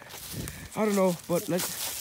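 Dry leaves crunch and rustle underfoot.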